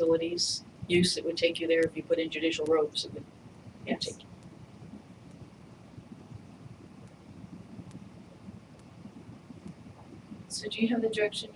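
An adult speaks through a microphone in short bursts.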